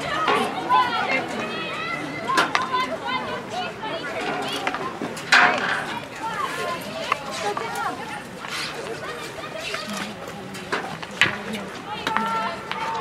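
Young women shout and call out to each other across an outdoor field.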